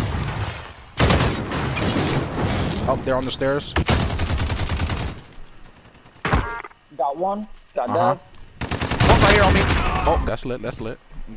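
Rapid gunfire bursts out in sharp volleys.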